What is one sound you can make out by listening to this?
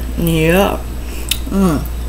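A spoon scrapes food onto a plate.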